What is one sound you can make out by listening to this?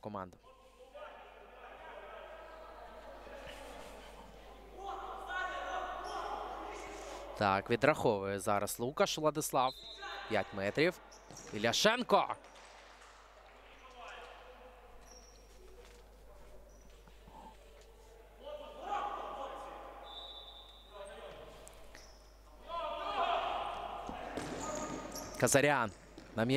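Players call out to each other in a large echoing hall.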